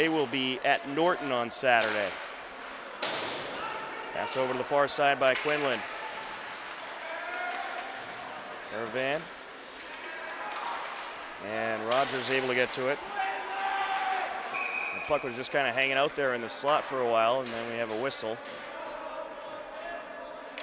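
Skates scrape and swish across ice.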